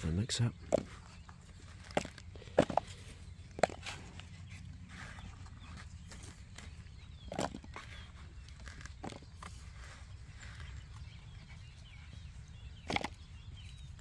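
Small tubers knock and tumble into a plastic bucket.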